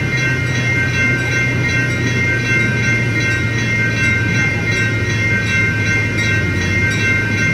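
A train engine hums and rumbles steadily as the train approaches.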